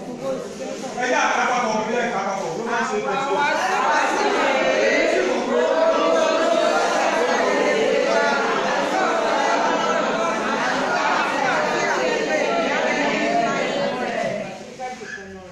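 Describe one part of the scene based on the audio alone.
A man talks loudly and with animation in an echoing room.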